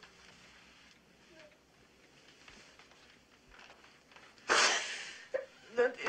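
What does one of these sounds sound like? A young woman sobs and says no.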